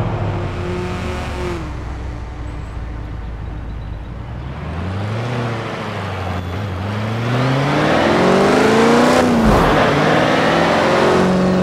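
A truck engine idles low and then revs up hard as the truck accelerates.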